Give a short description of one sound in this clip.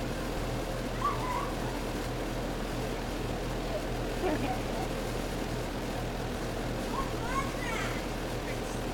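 A young child calls out with a high voice outdoors.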